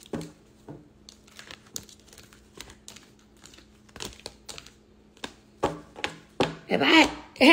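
Paper and plastic rustle and click as hands handle small items.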